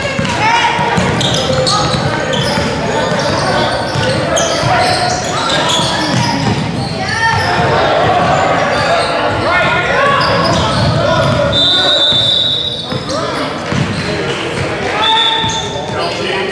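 A crowd of spectators chatters in the background.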